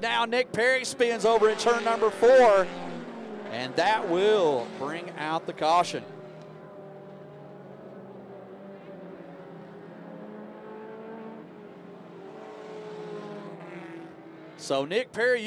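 Race car engines roar steadily around a dirt track.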